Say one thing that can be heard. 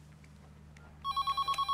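A mobile phone beeps several times.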